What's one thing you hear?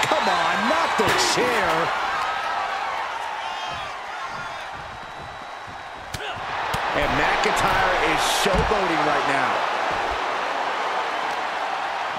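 Punches land with sharp thuds.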